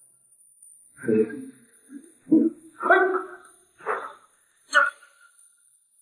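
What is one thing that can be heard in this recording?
A young man stammers in shock.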